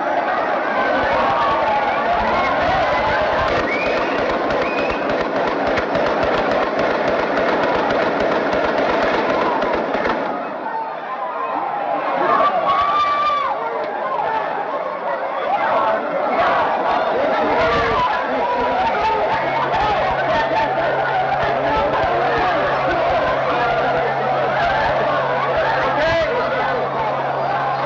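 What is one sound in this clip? A crowd of people shouts and screams outdoors.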